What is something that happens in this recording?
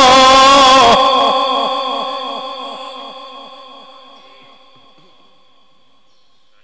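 A long echo rings out and fades slowly in a large hall.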